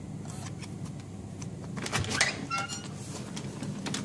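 A door latch clicks open.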